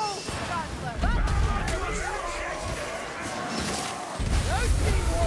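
A magic blast roars with a deep rumble.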